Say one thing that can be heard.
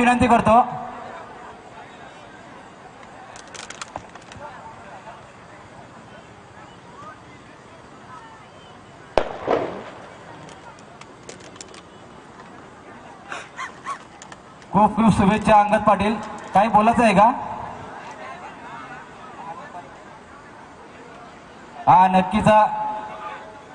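A man speaks into a microphone over a loudspeaker, in short bursts.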